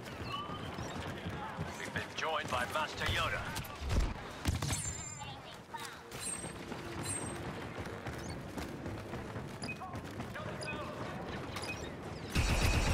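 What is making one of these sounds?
Blaster guns fire in quick bursts of sharp zaps.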